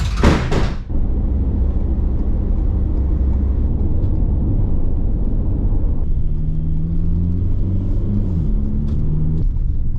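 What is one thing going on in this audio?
A van engine hums with steady road rumble while driving.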